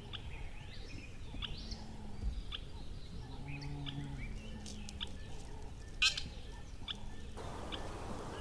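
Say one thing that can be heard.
A small bird pecks at seeds.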